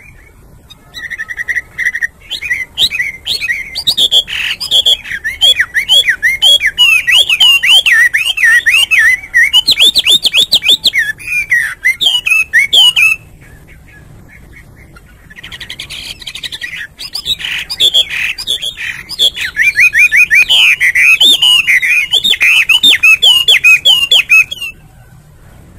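A songbird sings loud, rich, warbling phrases close by.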